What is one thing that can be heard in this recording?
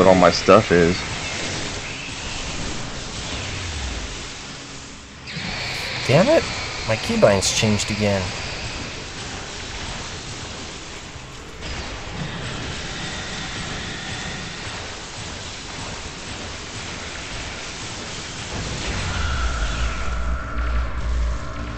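Energy weapons zap and crackle in quick bursts.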